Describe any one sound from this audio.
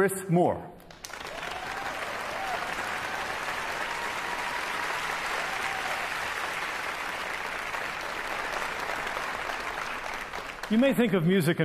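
A large audience applauds in a big hall.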